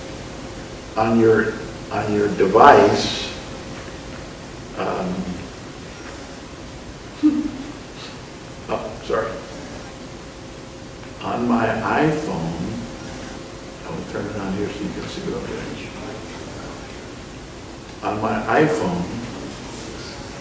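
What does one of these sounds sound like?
An elderly man talks calmly into a computer microphone, heard as if over an online call.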